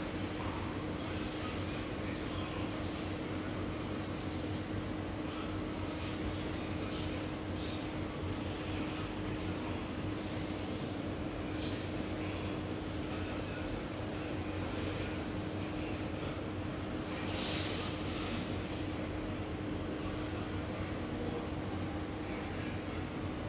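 A blade scrapes dry skin with soft, rasping strokes.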